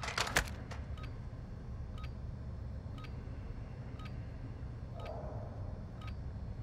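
A short electronic beep sounds once every second as a countdown.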